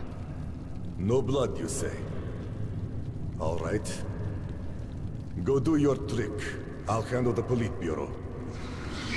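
A second man answers in a firm voice.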